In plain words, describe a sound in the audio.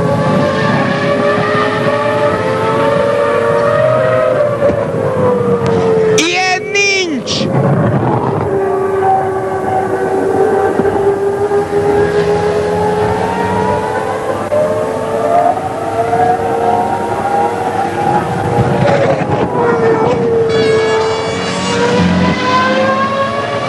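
Racing car engines scream loudly, their pitch rising and falling as they pass.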